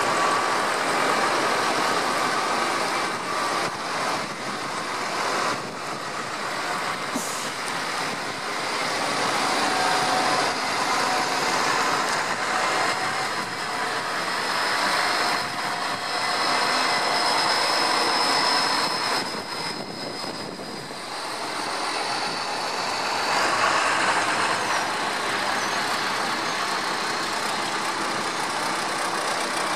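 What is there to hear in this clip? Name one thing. Tractor engines rumble and roar as they drive past close by.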